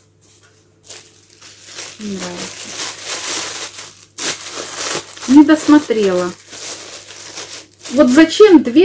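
Plastic wrapping crinkles and rustles in hands.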